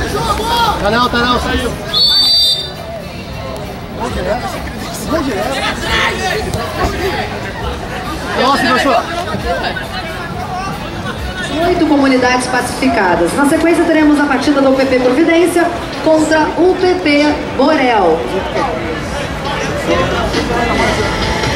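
A crowd murmurs and cheers in an open stadium.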